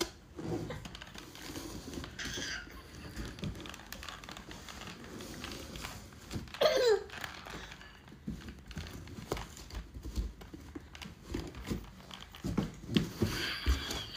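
A cardboard box rustles and taps as a baby pats it.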